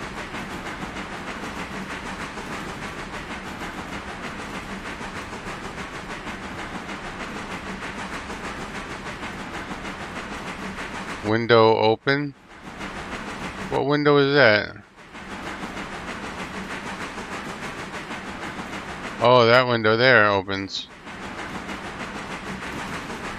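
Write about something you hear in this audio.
A steam locomotive rumbles and chugs steadily along the track.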